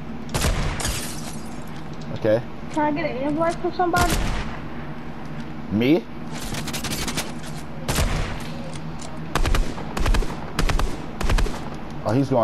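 Gunshots fire in sharp, loud bursts.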